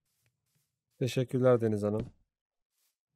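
A young man speaks briefly and with animation into a close microphone.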